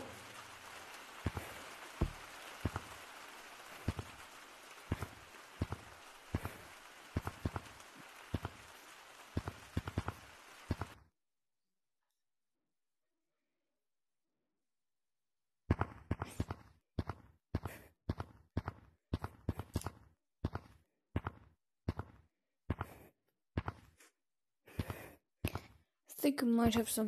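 Footsteps tap on hard ground at a steady walking pace.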